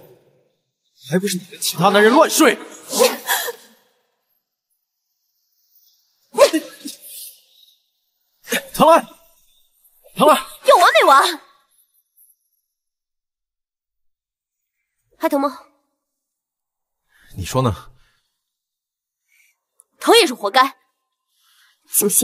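A young man answers with irritation, close by.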